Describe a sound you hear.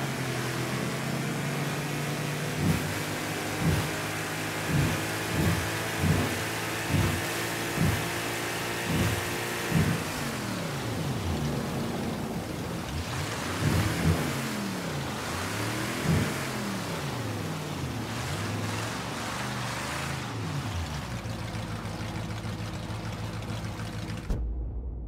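Water splashes and rushes along a boat's hull.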